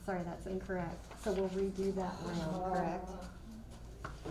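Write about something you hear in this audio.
A young boy speaks into a microphone.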